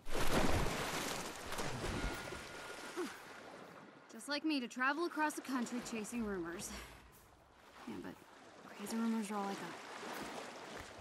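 Water sloshes as someone wades through it.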